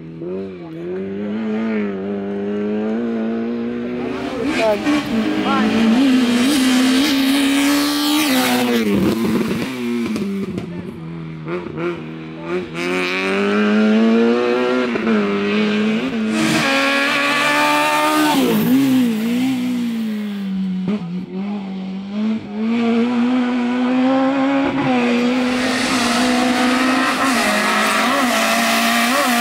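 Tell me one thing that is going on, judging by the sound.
Rally car engines roar and rev hard as the cars race past close by.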